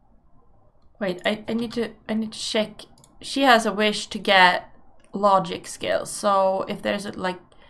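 A woman talks with animation into a microphone, close by.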